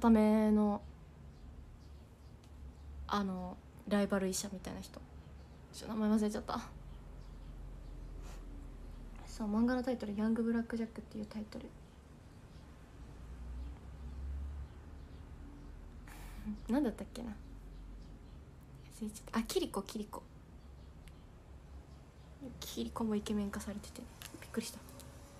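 A young woman talks softly and casually close to a microphone, in short bursts with pauses.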